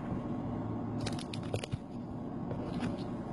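Light rustling and tapping come from an object being handled by hand.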